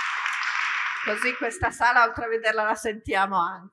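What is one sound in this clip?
A woman speaks calmly into a microphone in a large echoing hall.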